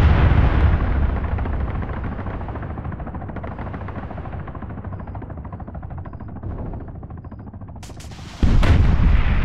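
A helicopter's rotor thumps overhead and slowly fades away.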